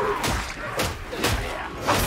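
A blade swings and slashes.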